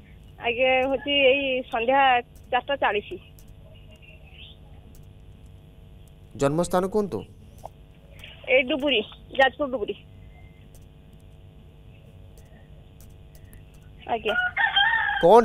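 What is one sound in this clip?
A man speaks calmly, heard through a thin, phone-like line.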